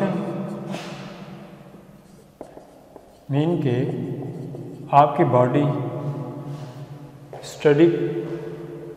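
A young man lectures calmly.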